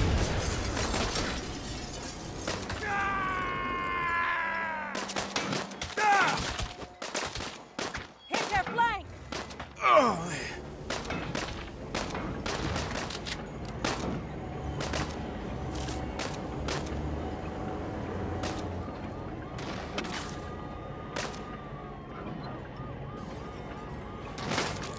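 Gunshots crack in scattered bursts.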